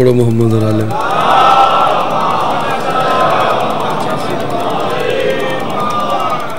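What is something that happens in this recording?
A man chants loudly into a microphone over a loudspeaker in a large echoing hall.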